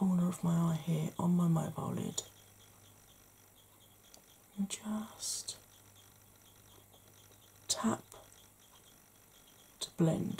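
A makeup brush brushes softly against skin.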